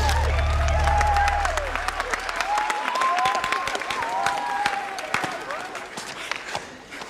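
A crowd of young women cheers and screams with excitement.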